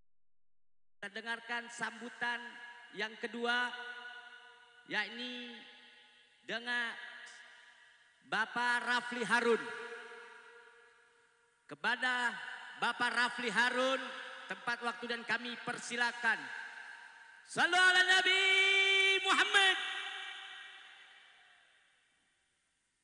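A man sings through a microphone in a large echoing space.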